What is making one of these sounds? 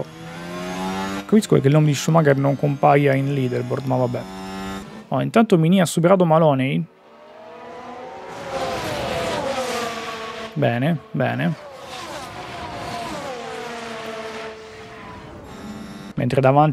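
Racing car engines whine and roar past.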